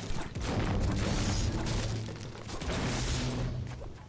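Wooden walls crack and break apart under pickaxe blows.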